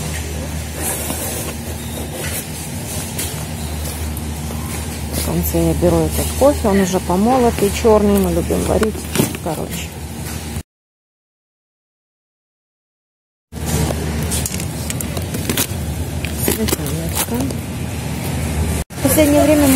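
Plastic containers and packages knock and rustle in a shopping cart.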